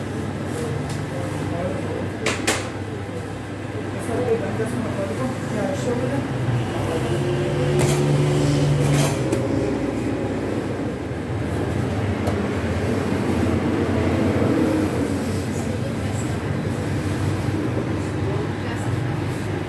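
A baker slaps and pats dough by hand.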